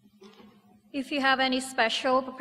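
A woman sings into a microphone in a large, echoing room.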